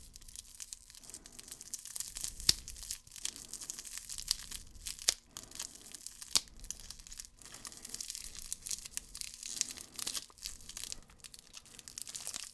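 Scissors snip with sharp clicks.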